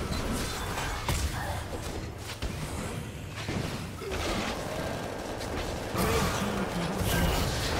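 Magic spells crackle and burst in a fast fight.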